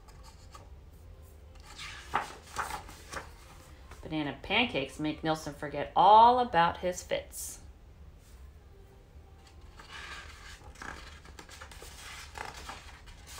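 Paper pages rustle as a book's page is turned.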